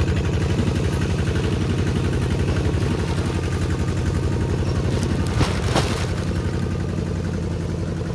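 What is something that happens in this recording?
A motor engine rumbles steadily close by.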